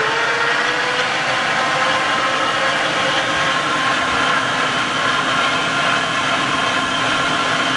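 An electric meat grinder whirs steadily.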